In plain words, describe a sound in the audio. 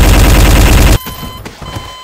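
A heavy gun fires in a rapid burst.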